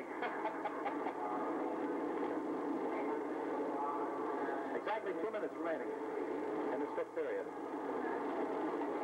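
A large crowd cheers and roars steadily in a stadium.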